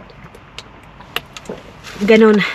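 A young woman gulps water from a plastic bottle.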